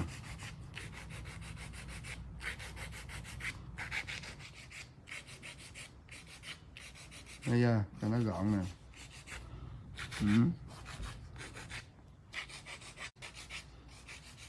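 A nail file scrapes back and forth across a fingernail.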